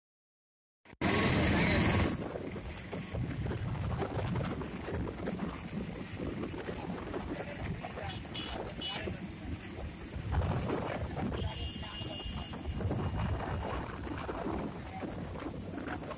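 A small vehicle's engine rumbles as it drives along a road.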